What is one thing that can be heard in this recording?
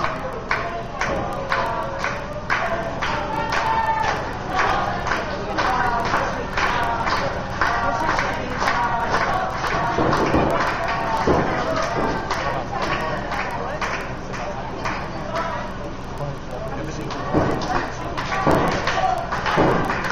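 A crowd chants loudly.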